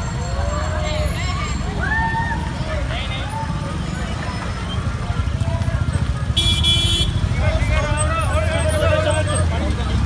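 A crowd of men chatter and call out nearby outdoors.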